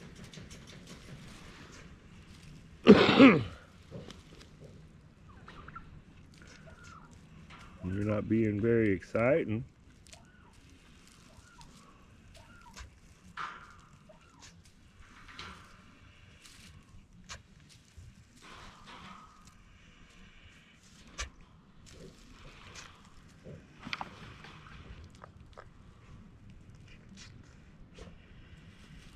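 Dry leaves rustle under turkeys' feet.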